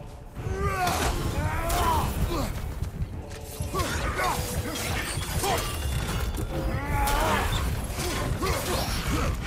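A large winged creature screeches shrilly.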